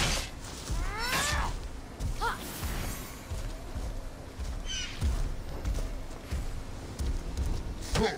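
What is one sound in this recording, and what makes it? Weapons swoosh and strike in a fight.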